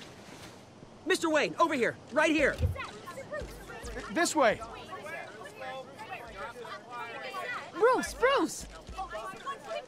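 A crowd cheers and calls out.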